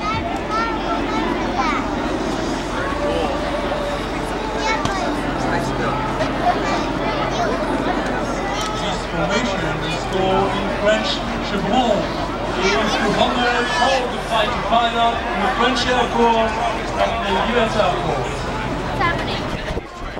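Jet planes roar steadily overhead.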